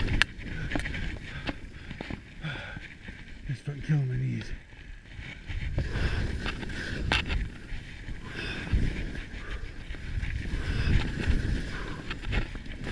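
Skis hiss and scrape over snow.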